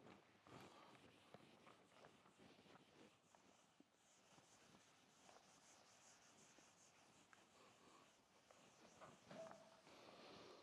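A duster squeaks and rubs across a whiteboard.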